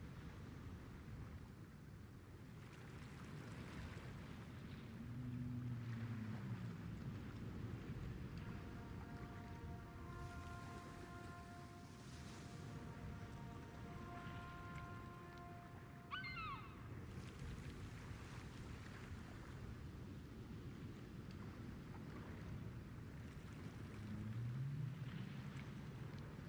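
Water laps gently against a ship's hull.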